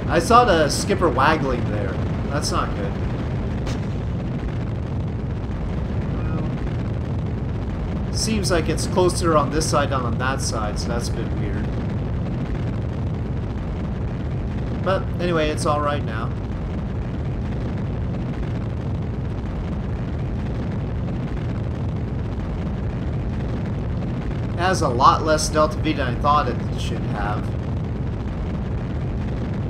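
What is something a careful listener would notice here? A rocket engine rumbles steadily.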